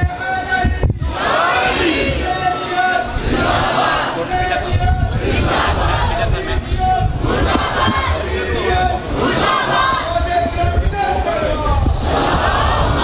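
A middle-aged man sings a lament loudly through a microphone in an echoing hall.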